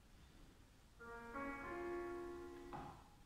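A piano plays a slow melody in an echoing hall.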